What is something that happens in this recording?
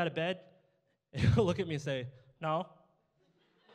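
A young man speaks into a microphone with animation in an echoing room.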